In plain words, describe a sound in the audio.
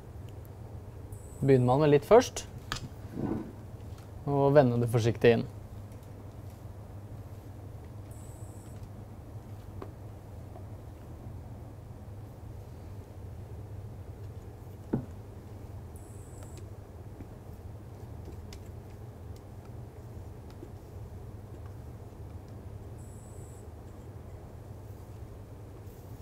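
A whisk scrapes and clinks against a metal bowl.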